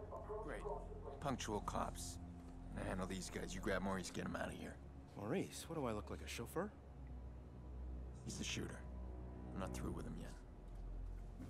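A second man answers in a low, calm voice.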